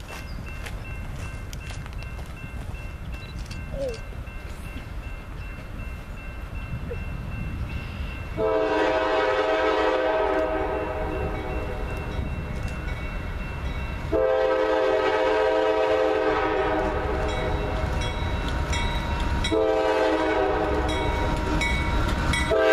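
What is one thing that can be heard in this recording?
A freight train's diesel engines rumble, growing louder as it approaches.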